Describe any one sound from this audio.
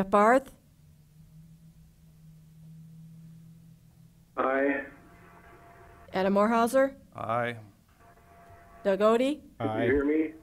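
A woman speaks in short phrases over an online call.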